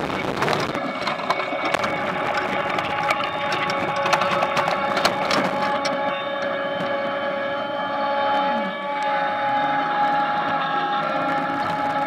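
Potatoes knock and tumble against rattling rollers.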